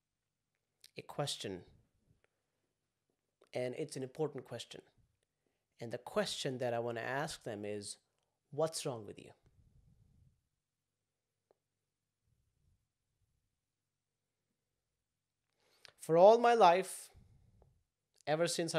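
A young man speaks calmly and clearly into a close microphone, with pauses.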